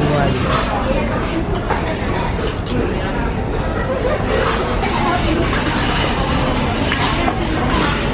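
A metal spoon scrapes and clinks against a metal bowl.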